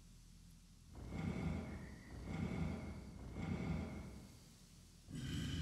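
Heavy stone drums turn with a grinding rumble.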